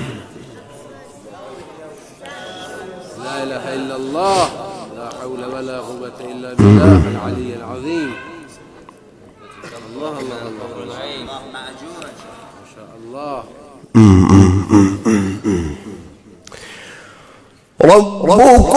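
A young man chants melodically into a microphone, his voice rising and falling in long held phrases.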